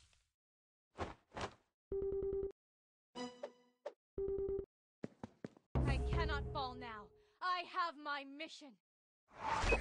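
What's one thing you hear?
Short electronic game chimes and beeps sound between the battles.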